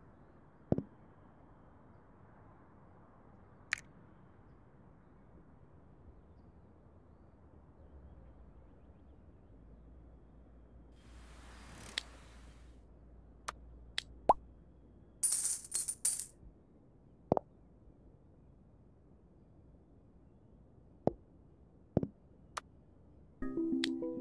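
Short electronic pops and clicks sound now and then.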